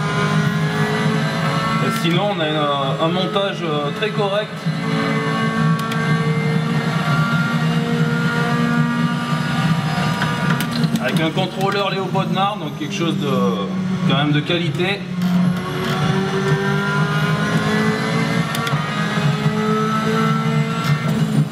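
A racing car engine roars steadily through loudspeakers, its pitch rising and falling as it shifts gears.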